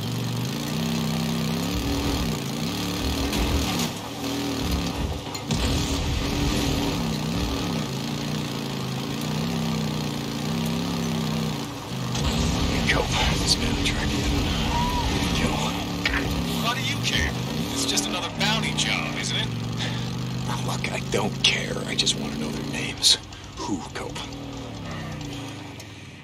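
A motorcycle engine rumbles steadily, revving up and down.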